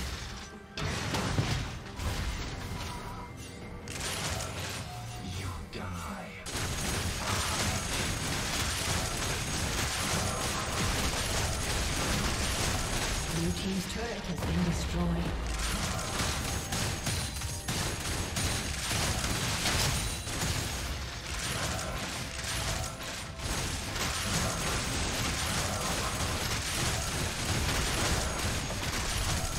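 Magic blasts and weapon clashes of a video game battle crackle and boom.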